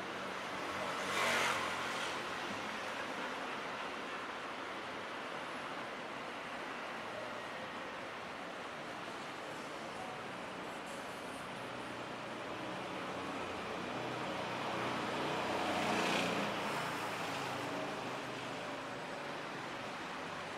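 City traffic hums in the distance outdoors.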